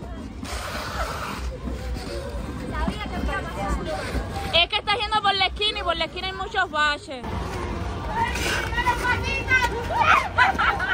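People chatter and call out nearby outdoors.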